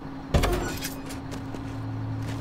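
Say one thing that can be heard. A heavy vehicle engine rumbles.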